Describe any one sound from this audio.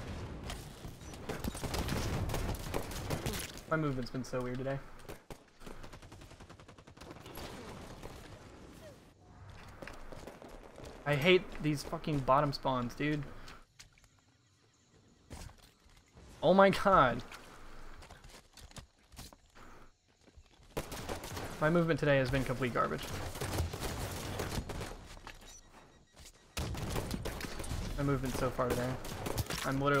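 Gunfire crackles from a video game.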